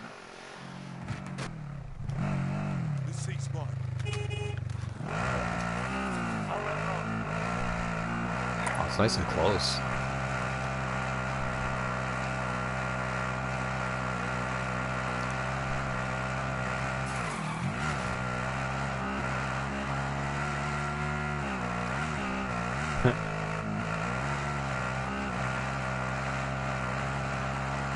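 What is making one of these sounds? A vehicle engine drones steadily, rising and falling in pitch as it drives.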